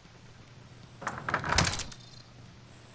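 A door slams shut.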